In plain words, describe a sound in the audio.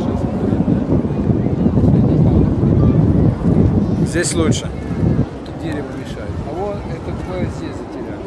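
A large crowd murmurs in the distance.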